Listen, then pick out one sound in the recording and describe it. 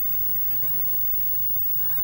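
A woman speaks quietly nearby.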